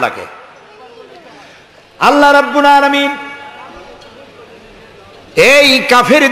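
A man preaches loudly in a chanting, melodic voice through a microphone and loudspeakers.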